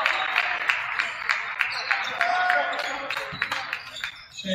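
A basketball bounces rhythmically on a hardwood floor in a large echoing gym.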